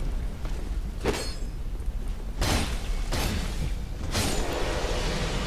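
Blades strike with sharp metallic hits.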